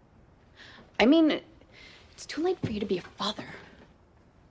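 A young woman speaks close by, upset and pleading.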